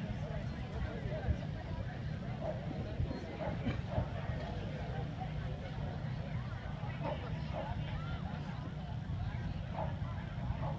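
A crowd murmurs and chatters nearby outdoors.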